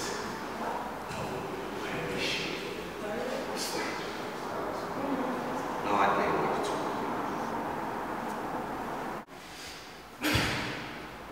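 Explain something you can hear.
Young men talk nearby in an echoing room.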